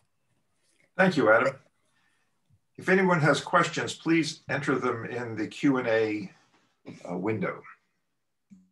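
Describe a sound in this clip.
A young man speaks calmly, heard through an online call.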